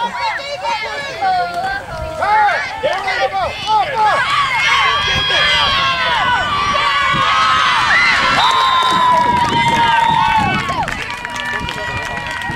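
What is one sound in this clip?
A crowd of spectators cheers and shouts excitedly outdoors.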